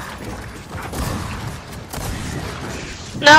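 A heavy gun fires in short bursts.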